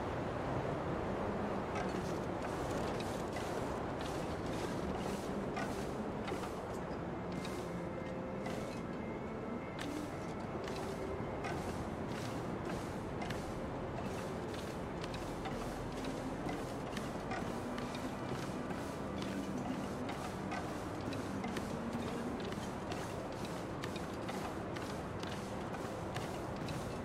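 Footsteps crunch steadily on snow and metal.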